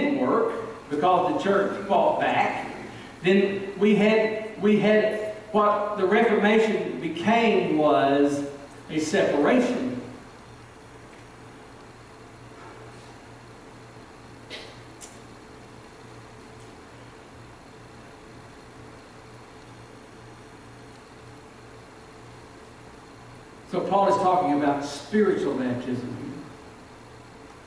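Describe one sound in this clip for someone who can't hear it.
A middle-aged man speaks with animation through a microphone in a large echoing room.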